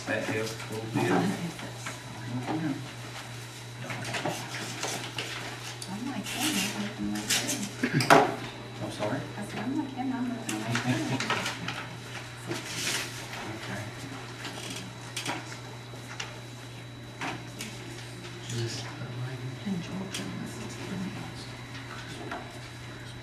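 A man speaks calmly, heard distantly through a room microphone.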